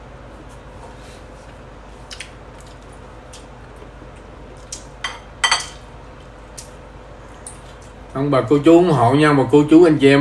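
A fork clinks against a plate.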